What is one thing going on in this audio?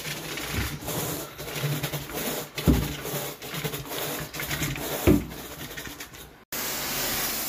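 A carpet rake scrapes and brushes across a carpet in short strokes.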